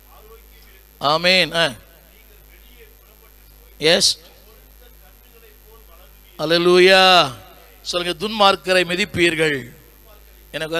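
An elderly man speaks into a microphone over a loudspeaker in short, drawn-out bursts with pauses between them.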